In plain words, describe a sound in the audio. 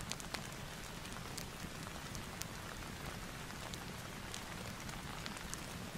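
A book page rustles as it is turned.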